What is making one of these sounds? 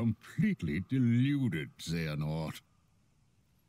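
An elderly man speaks in a low, scornful voice.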